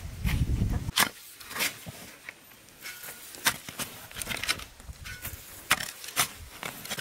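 A shovel scrapes and digs into dry soil.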